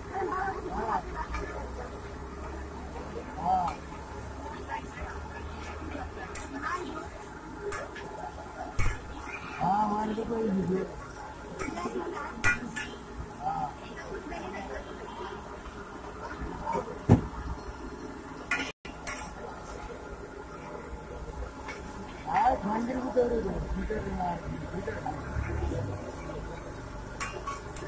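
A metal spatula scrapes and taps on a hot iron griddle.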